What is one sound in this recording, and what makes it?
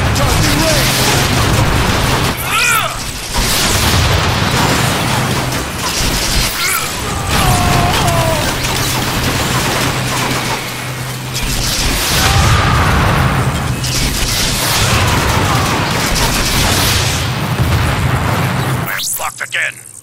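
An energy blaster fires in rapid bursts.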